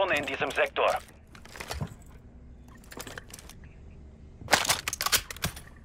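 Metal parts of a gun clack as weapons are swapped.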